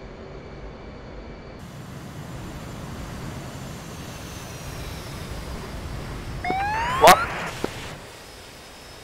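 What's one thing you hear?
A jet engine roars as a fighter plane takes off.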